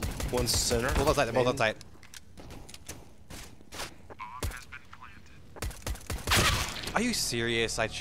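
Pistol shots crack sharply.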